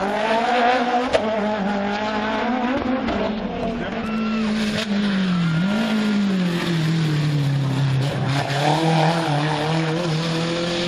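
A rally car engine roars and revs loudly as the car speeds past.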